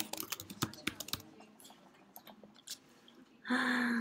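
Keyboard keys click as someone types.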